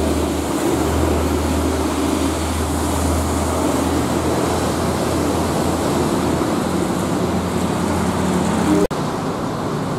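A diesel coach engine rumbles as it drives past.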